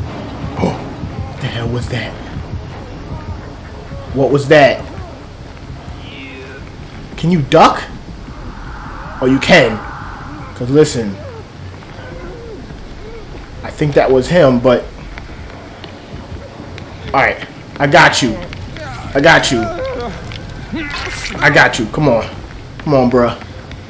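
A young man talks excitedly into a headset microphone, close by, in short bursts.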